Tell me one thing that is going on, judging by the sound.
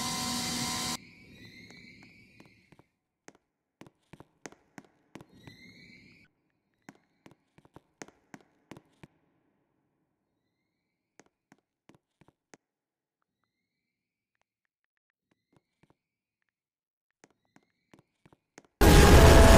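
Soft keyboard clicks tap out quickly in short bursts.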